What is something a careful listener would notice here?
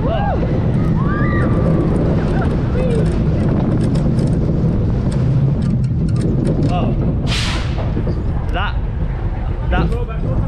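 A roller coaster car rumbles loudly along its track.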